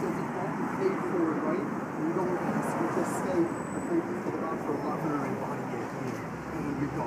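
A young man talks calmly up close.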